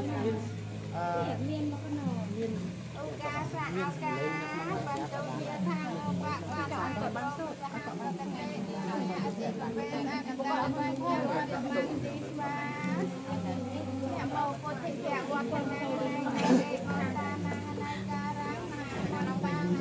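Several adult men and women talk and murmur nearby.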